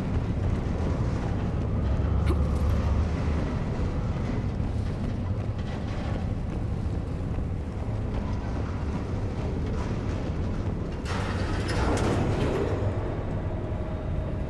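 A low, steady mechanical hum drones throughout.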